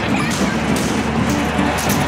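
A little girl laughs.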